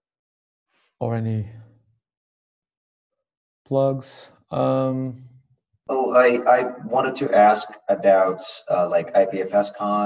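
Men talk over an online call, one after another, with animation.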